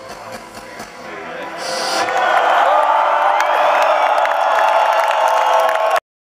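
A large crowd cheers and shouts, growing louder.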